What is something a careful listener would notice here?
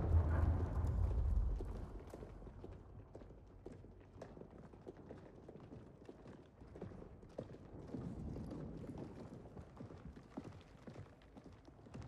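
Several pairs of boots tread down stone stairs in a large echoing hall.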